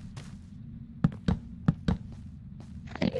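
A wooden block thuds into place.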